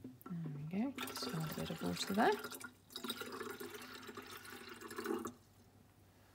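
Water pours from a jug into a plastic tank.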